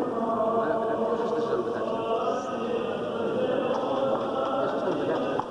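Men chant slowly together in a reverberant hall.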